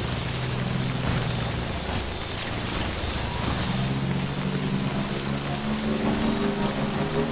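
Tyres crunch over rocks and grass.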